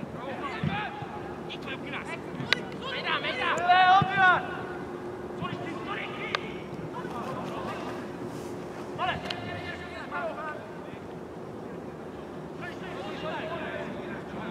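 Men shout from a distance outdoors.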